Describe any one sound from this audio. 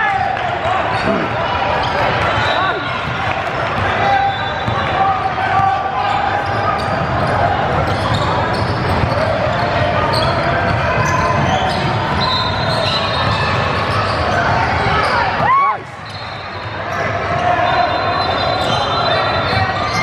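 A crowd of people chatters in a large echoing gym.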